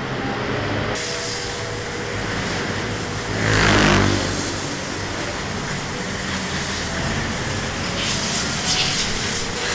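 An air hose hisses in bursts.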